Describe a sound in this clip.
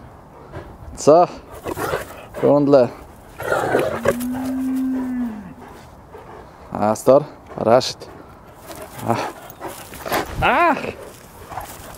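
A dog yelps and whines in short high cries.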